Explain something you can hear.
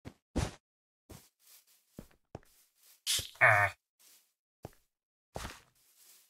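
Short game footsteps tap on stone blocks.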